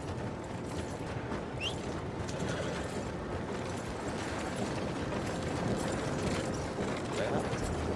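Carriage wheels rattle over a street.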